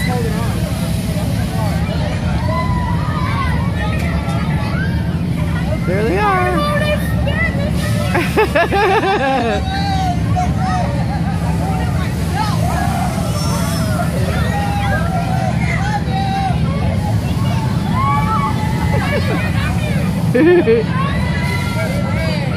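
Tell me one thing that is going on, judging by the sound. Young riders shout and scream with excitement close by.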